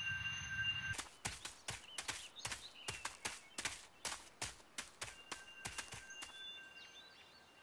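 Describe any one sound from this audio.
Footsteps fall on soft grass.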